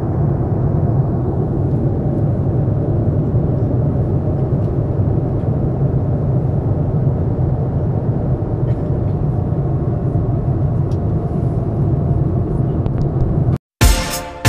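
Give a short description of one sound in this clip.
A jet engine drones steadily inside an airliner cabin.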